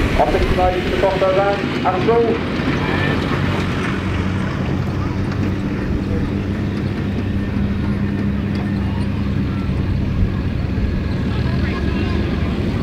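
Off-road vehicles drive by, engines rumbling.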